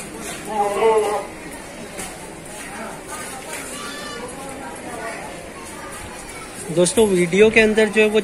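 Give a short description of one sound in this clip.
A goat bleats loudly.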